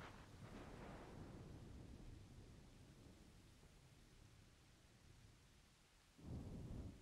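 A young man talks quietly close to a microphone.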